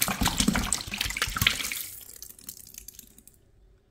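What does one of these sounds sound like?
Foam fizzes and crackles softly.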